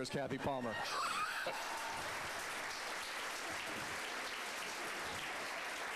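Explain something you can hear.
A crowd cheers and claps in a large room.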